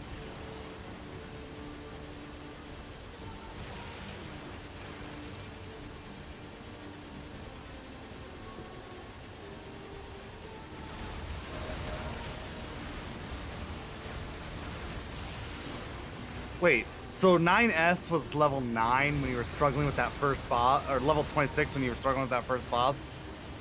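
Soft game music plays steadily.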